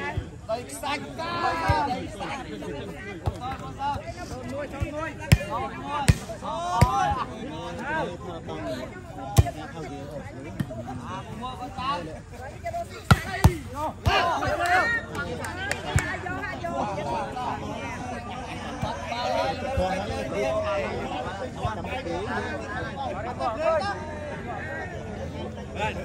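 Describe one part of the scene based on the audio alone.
A crowd of young men shout and cheer outdoors.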